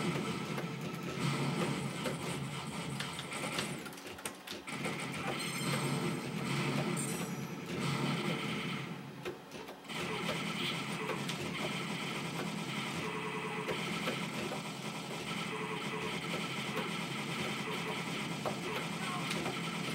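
Arcade game music plays loudly and steadily.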